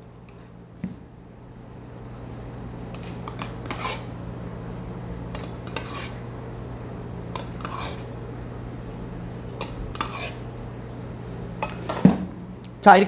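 Milk pours softly into a cup.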